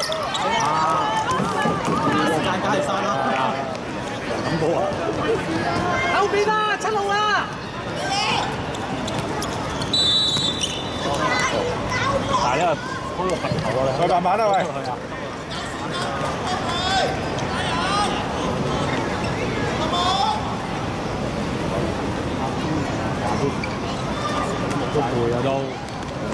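Young players shout to each other across the pitch.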